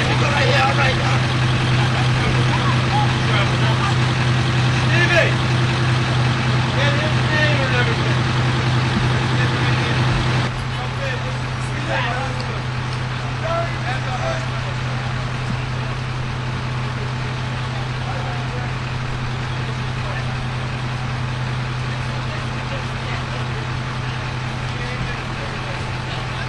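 A fire engine's motor idles with a low, steady hum.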